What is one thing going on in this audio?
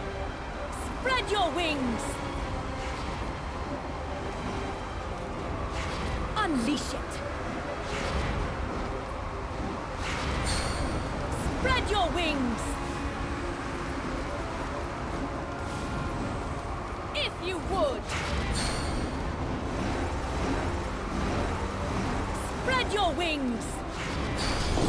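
A large winged creature gives falling shrieks as it swoops past, again and again.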